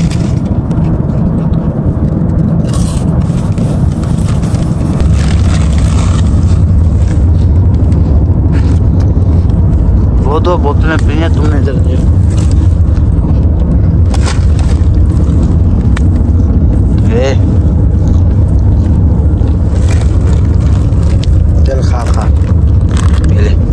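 A crisp packet rustles and crinkles.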